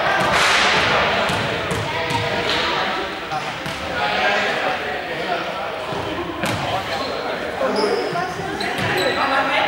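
A ball bounces and thuds on a hard floor.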